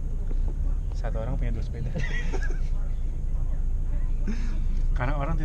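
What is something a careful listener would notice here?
Young men talk and laugh close by.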